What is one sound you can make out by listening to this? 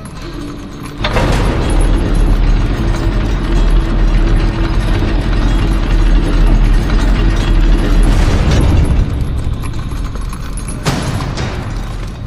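A massive stone and metal platform rumbles deeply as it moves.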